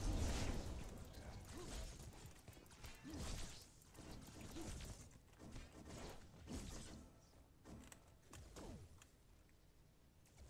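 Energy weapons blast and zap in quick bursts.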